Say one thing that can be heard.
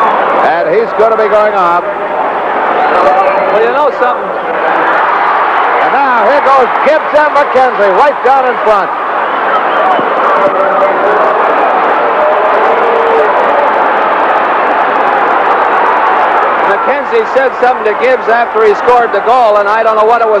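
A large crowd roars and cheers in an echoing arena.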